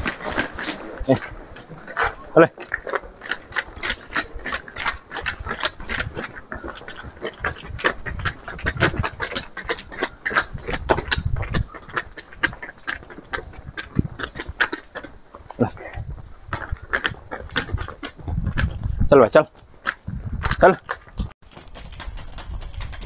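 Hooves clop on a hard path.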